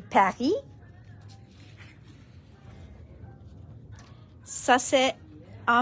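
Heavy paper rustles as a page is turned.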